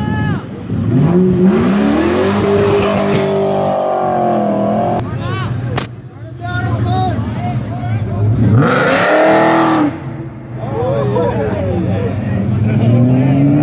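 A car engine roars as a car drives past.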